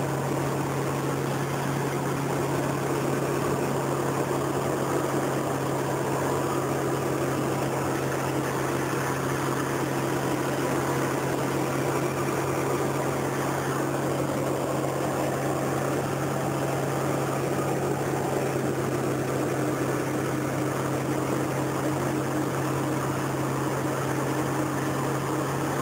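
A small propeller plane's engine drones steadily from close by.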